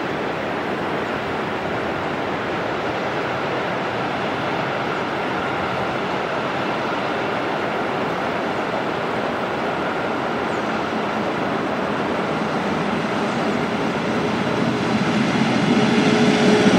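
A train rumbles along the tracks, growing louder as it approaches.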